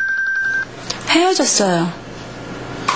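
A woman asks a question close by.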